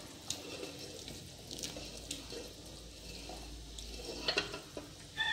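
Broth simmers gently in a pot.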